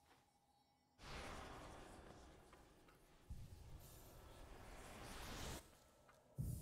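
A shimmering magical whoosh swells and then cuts off.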